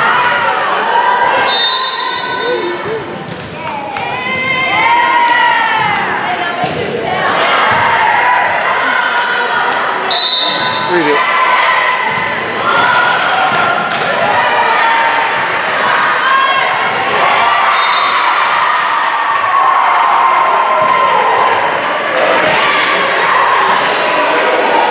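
Young women chatter and call out in an echoing gym.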